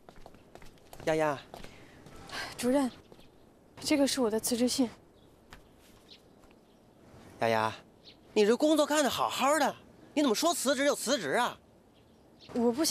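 A young woman speaks calmly and clearly close by.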